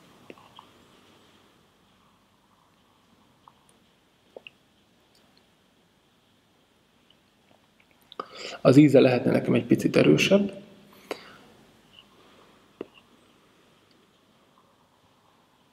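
A man softly exhales.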